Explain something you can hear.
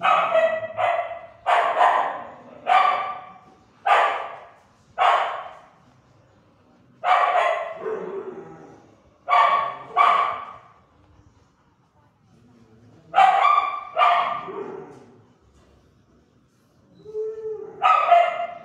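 A dog barks loudly in bursts, echoing off hard walls.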